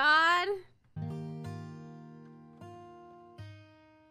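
An acoustic guitar is strummed, ringing out.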